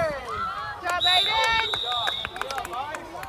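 A referee's whistle blows a sharp, steady blast.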